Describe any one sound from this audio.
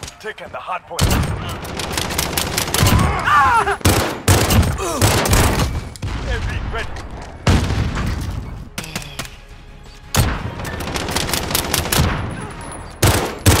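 Sniper rifle shots ring out in a video game.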